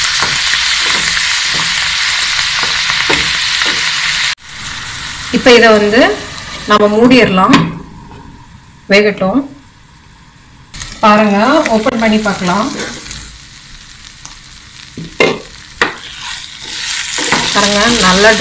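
A wooden spatula scrapes and stirs in a pan.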